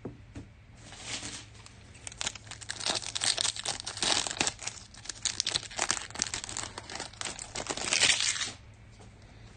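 A foil card pack crinkles and tears open as hands rip it.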